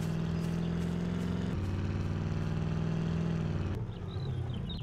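An off-road SUV engine drones while driving.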